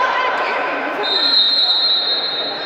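A referee's whistle blows once, short and shrill.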